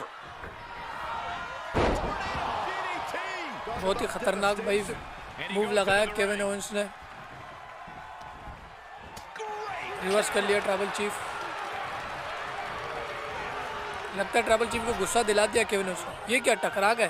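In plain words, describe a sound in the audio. A crowd cheers and murmurs in a large arena.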